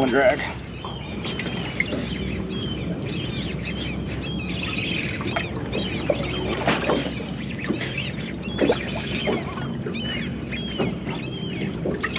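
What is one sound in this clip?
A fishing reel clicks and whirs as line is reeled in.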